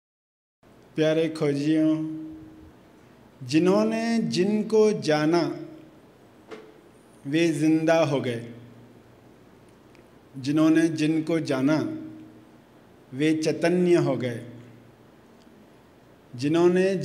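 A middle-aged man speaks calmly into a microphone in phrases with pauses.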